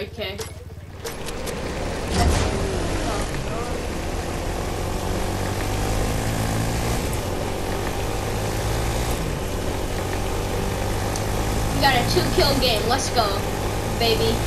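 A quad bike engine hums steadily as it drives along.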